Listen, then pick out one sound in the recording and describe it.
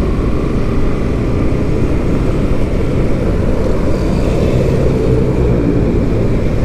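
Wind rumbles and buffets loudly against a microphone outdoors.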